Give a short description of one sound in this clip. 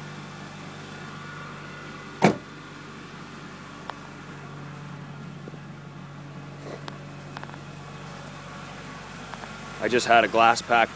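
A vehicle engine idles with a steady low hum.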